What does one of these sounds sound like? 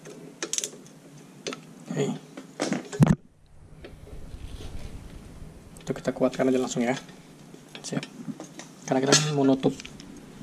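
A cable rattles and rustles as hands handle it.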